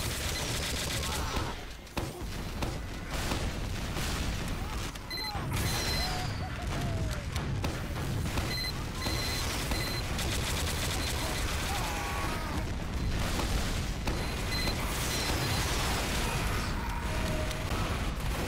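A grenade launcher fires with hollow thumps.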